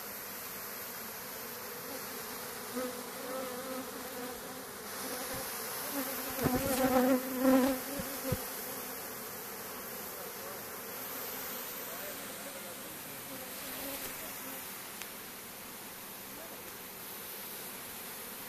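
Many bees buzz steadily close by, outdoors.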